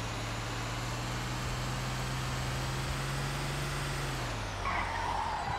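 A heavy truck engine rumbles steadily, then winds down.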